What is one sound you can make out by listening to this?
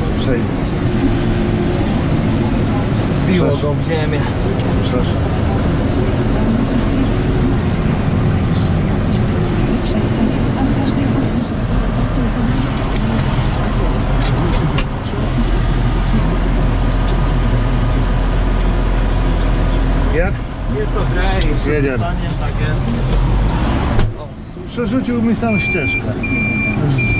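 A tractor engine rumbles loudly and steadily from inside the cab.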